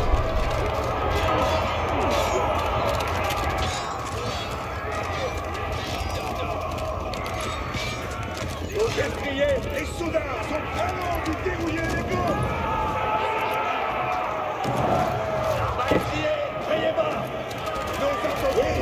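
Many soldiers march together with tramping feet.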